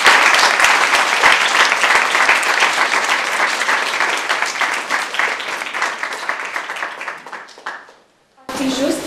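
An audience applauds, then fades away.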